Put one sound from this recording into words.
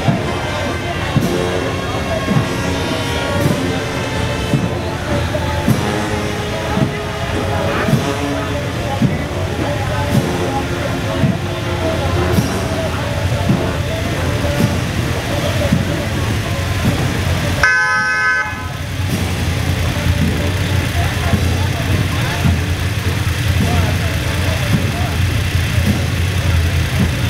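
Motorcycle engines hum steadily as they ride past slowly.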